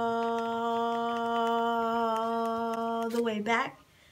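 A young woman sings a long, steady held note up close.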